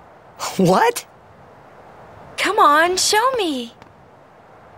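A young woman speaks brightly and coaxingly.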